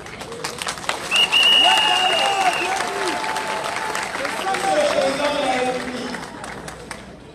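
A man speaks loudly into a microphone, heard through loudspeakers outdoors.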